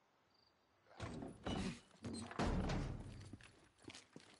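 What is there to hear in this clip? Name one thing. Heavy footsteps thud and scuffle on hard ground.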